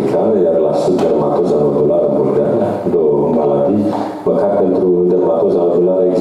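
A middle-aged man speaks calmly and steadily into a microphone.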